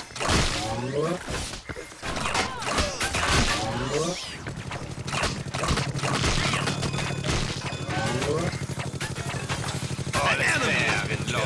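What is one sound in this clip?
Video game blasters fire in rapid bursts.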